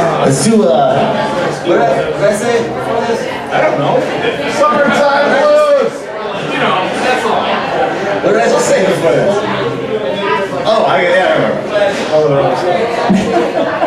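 Electric guitars play loudly.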